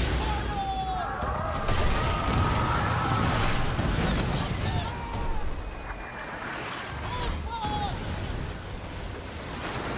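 Waves crash against a ship's hull.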